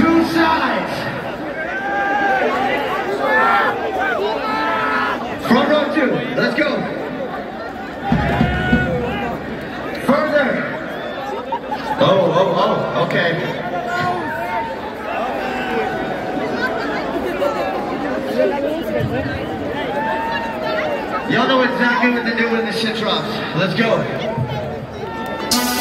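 A large crowd shouts and cheers.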